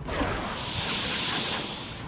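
Fire roars in a burst of flame.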